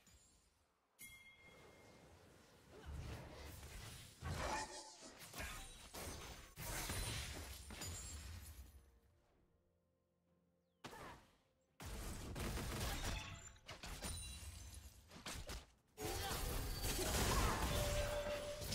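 Video game spell blasts and weapon hits burst and clash in quick bursts.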